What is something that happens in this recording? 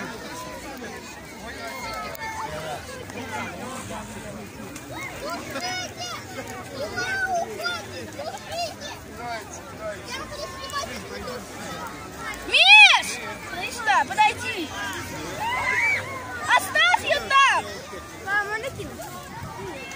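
A crowd of people talks and shouts outdoors.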